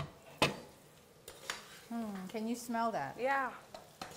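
A spoon clinks against a pot.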